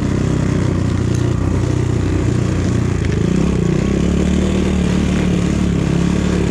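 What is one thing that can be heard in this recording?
A dirt bike engine drones loudly and steadily.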